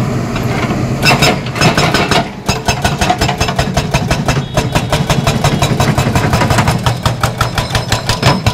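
An excavator's hydraulic breaker hammers rapidly on concrete.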